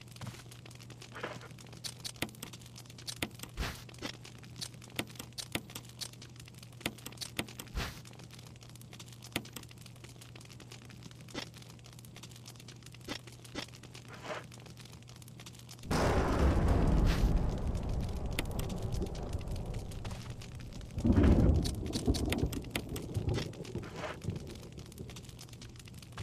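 Short menu clicks and beeps sound as options are picked.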